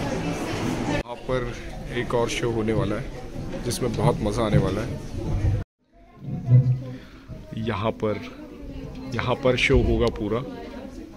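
A group of children chatter and talk in a room.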